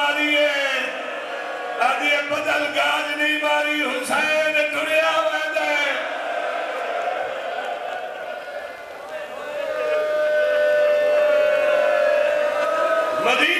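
A man speaks passionately through a microphone, his voice booming over loudspeakers.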